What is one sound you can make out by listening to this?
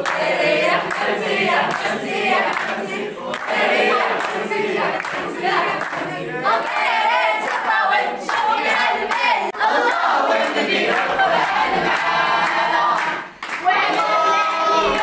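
A crowd claps hands in a steady rhythm.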